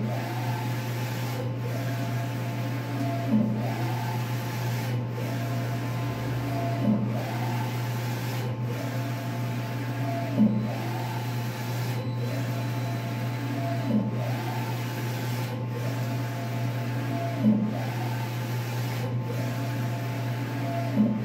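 A printer's print head whirs back and forth in a repeating rhythm, with a clunk at each turn.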